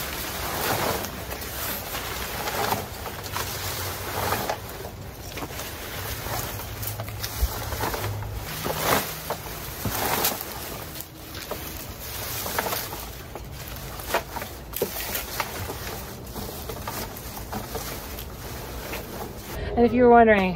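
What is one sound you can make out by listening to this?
Leafy plant stems rustle and crunch as they are stuffed into a plastic bin.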